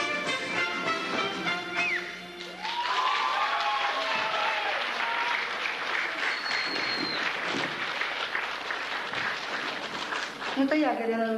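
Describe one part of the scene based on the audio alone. Dancers' feet stamp on a wooden stage.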